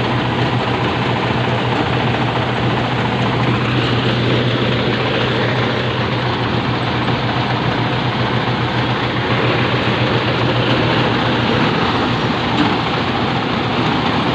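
A diesel engine drives a threshing machine with a loud steady roar and rattle.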